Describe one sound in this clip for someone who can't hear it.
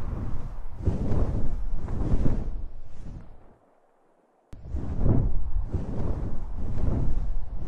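Wind rushes past in heavy, pulsing gusts.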